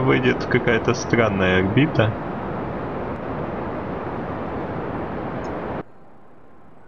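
A rocket engine roars steadily, then cuts off abruptly.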